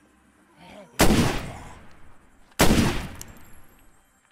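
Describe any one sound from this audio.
A pistol fires two loud shots.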